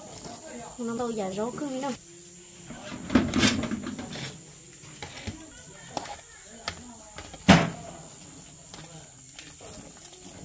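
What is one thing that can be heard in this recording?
A metal ladle clinks and scrapes against a metal pot.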